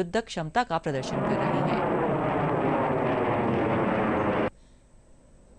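A fighter jet roars overhead.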